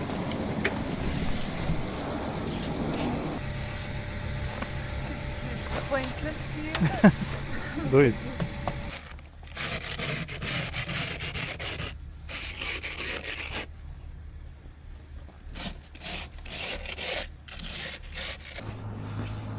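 A plastic scraper scrapes ice and snow off a car window.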